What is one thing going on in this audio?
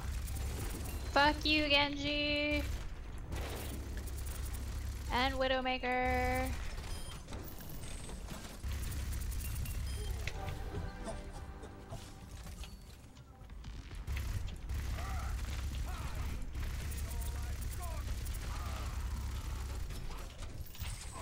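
A heavy rapid-fire gun fires in loud bursts.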